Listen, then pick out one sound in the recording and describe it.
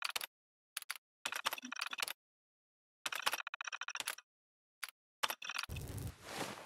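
Keys on a computer terminal clatter in short, quick bursts.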